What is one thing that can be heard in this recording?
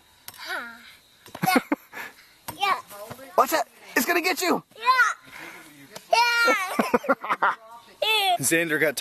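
A young child shouts and squeals excitedly.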